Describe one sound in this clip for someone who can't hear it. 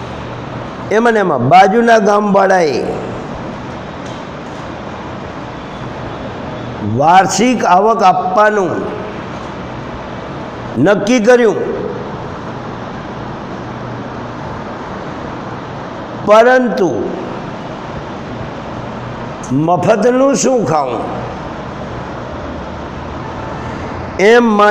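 A middle-aged man speaks in short bursts with long pauses, close by.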